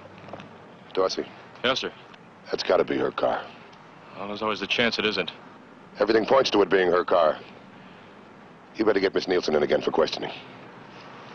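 A young man speaks in a firm, steady voice, close by.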